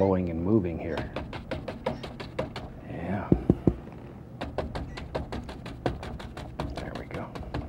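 A painting knife taps quickly and lightly against a canvas.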